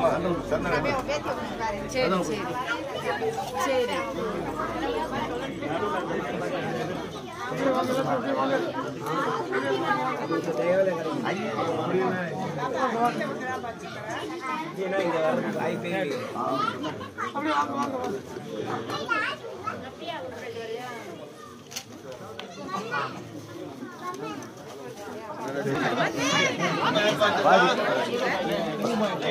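A crowd of men and women chatter loudly close by.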